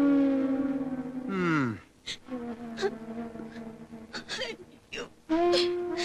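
An elderly woman speaks with animation.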